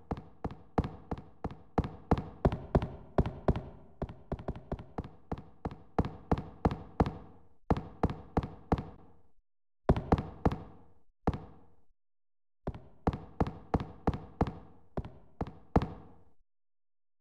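Footsteps thud quickly on wooden boards and stairs, with a slight echo.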